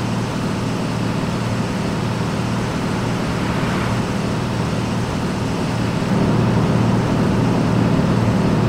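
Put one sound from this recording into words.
A truck's diesel engine hums steadily.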